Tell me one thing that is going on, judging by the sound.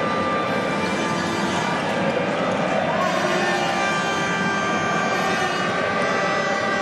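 A large indoor crowd cheers and chants loudly, echoing through a big arena.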